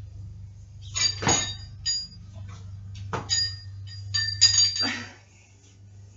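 A loaded barbell's plates clank and rattle as the bar is lifted.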